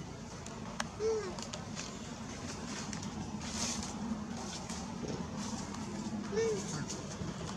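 A baby monkey gives short squeaks.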